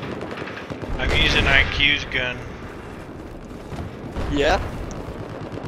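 A young man talks into a headset microphone with animation.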